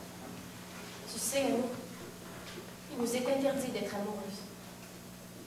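A woman speaks loudly on a stage, heard from a distance in a large hall.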